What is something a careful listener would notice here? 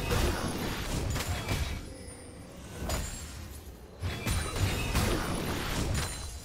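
Video game spell effects whoosh and crackle in a battle.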